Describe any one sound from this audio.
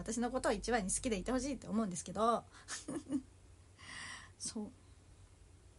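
A young woman talks brightly and close to a microphone.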